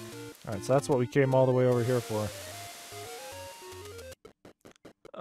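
Retro video game music plays in short electronic beeps.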